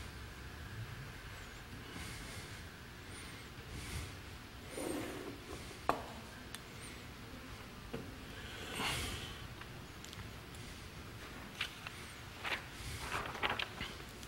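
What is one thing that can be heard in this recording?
Small objects knock and clink on a table.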